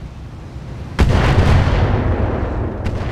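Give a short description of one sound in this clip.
Gunfire bursts loudly.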